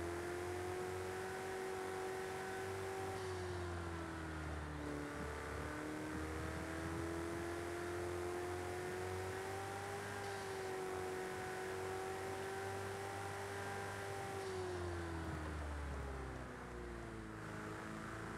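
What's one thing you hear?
A sports car engine hums steadily, rising and falling in pitch as it speeds up and slows down.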